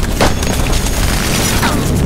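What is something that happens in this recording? Bullets strike into dirt.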